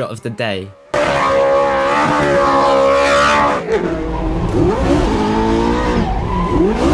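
A sports car engine roars at high revs as the car speeds past.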